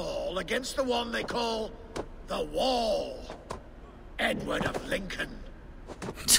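A deep-voiced man speaks calmly and taunts up close.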